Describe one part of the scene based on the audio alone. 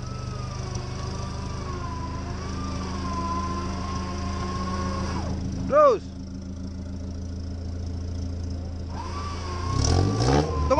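A vehicle engine rumbles and revs.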